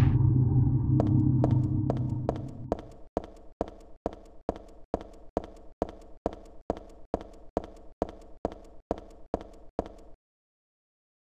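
Quick, even footsteps run across a hard floor.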